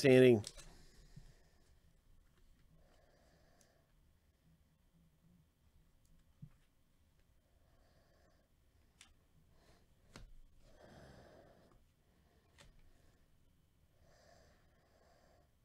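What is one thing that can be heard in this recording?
Trading cards rustle and slide against each other as they are shuffled.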